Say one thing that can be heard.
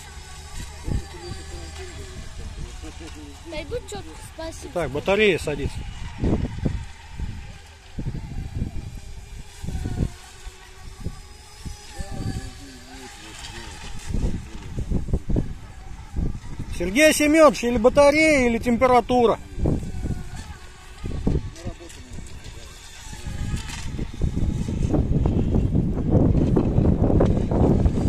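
A small model boat's motor whines as it speeds across the water.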